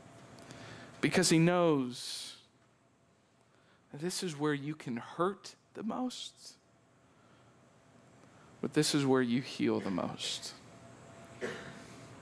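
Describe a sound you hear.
A man speaks through a microphone in pauses, in a large echoing hall.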